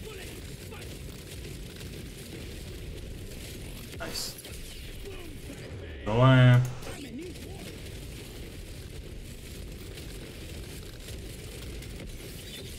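Laser weapons fire in a steady stream in a video game.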